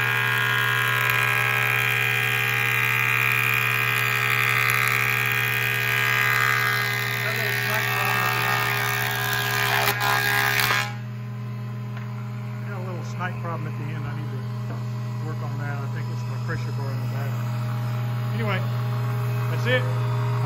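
A planer motor hums steadily.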